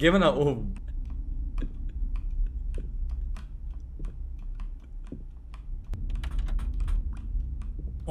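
Footsteps climb wooden stairs.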